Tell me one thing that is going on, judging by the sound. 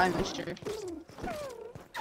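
A wooden hammer thuds against a giant beetle's shell.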